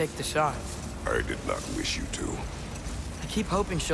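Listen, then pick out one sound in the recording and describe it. A deep-voiced man answers calmly.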